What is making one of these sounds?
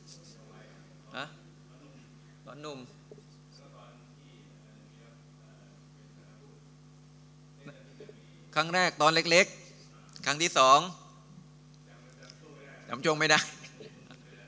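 A middle-aged man speaks through a microphone in short bursts, then with growing animation.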